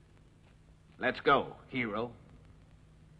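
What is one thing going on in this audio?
A second man answers sharply nearby.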